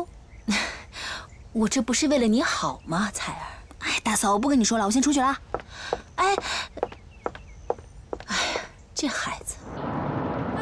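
A young woman speaks animatedly, close by.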